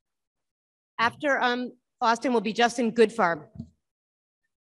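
A young woman speaks into a microphone with animation.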